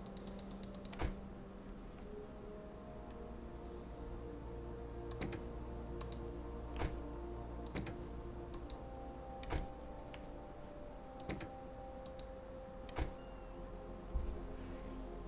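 Short interface clicks sound several times.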